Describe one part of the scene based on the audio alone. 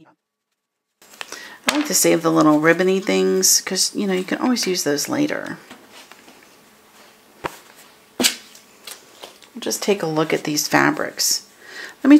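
Fabric and paper rustle softly as they are handled.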